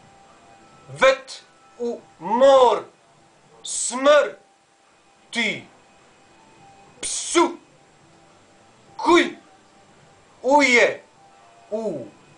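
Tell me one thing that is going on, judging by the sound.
A man speaks close by in short, loud bursts with pauses between them.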